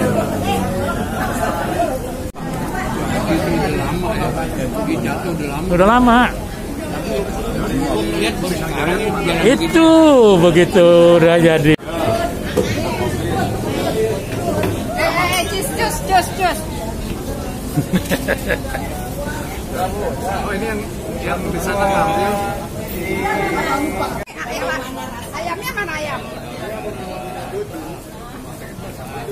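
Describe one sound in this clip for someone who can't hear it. A crowd of men and women chatter in a busy, echoing room.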